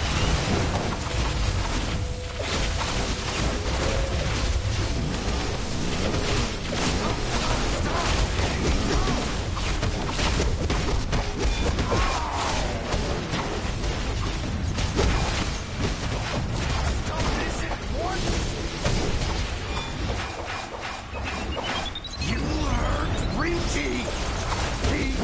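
Metal blows clash and thud again and again.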